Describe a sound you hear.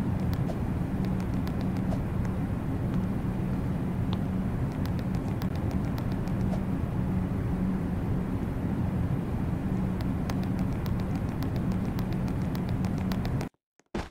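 Heavy metal footsteps clank on a hard floor.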